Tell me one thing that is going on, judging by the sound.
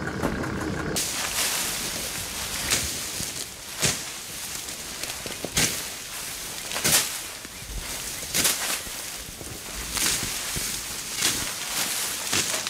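Tall grass rustles and swishes as a person pushes through it.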